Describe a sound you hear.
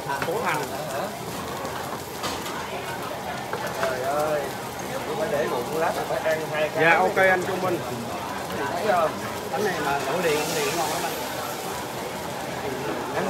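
Gas burners roar steadily.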